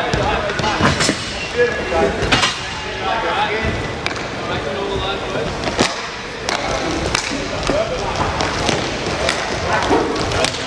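Skate wheels roll and scrape across a hard floor.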